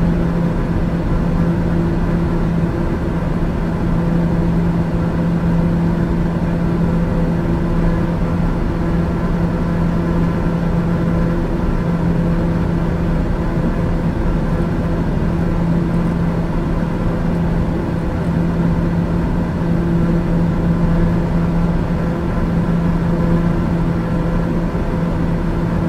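An aircraft engine drones steadily in the cabin.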